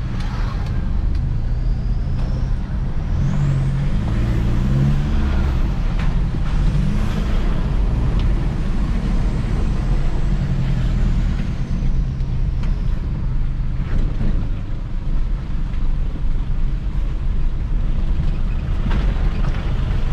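The car body rattles and knocks over bumps.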